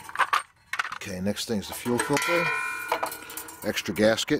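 A metal lever clicks into place.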